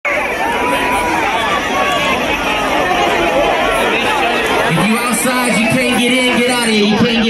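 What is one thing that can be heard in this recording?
Loud music plays through loudspeakers at an outdoor concert.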